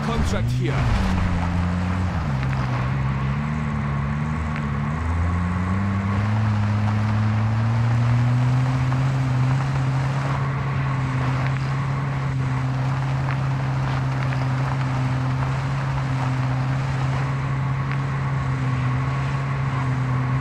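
Tyres rumble over gravel and rail tracks.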